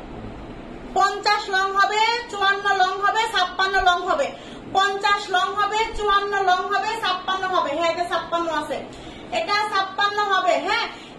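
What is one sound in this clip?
A young woman speaks with animation close to the microphone.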